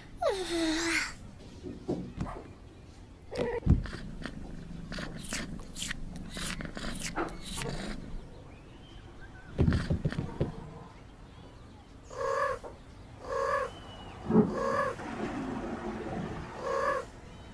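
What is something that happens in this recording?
A kitten meows in a high voice.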